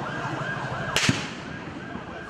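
A gunshot cracks once, sharply.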